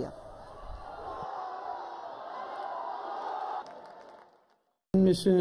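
A stadium crowd cheers and roars.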